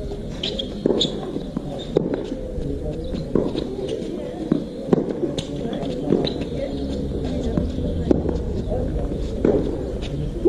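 A tennis ball is struck back and forth with sharp pops of a racket.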